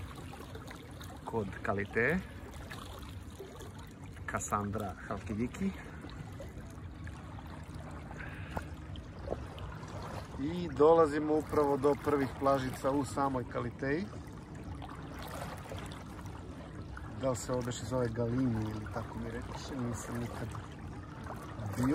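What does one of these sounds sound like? Water laps and splashes gently against a slowly moving boat.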